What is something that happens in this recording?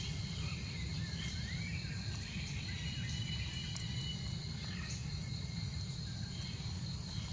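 A baby monkey squeaks softly nearby.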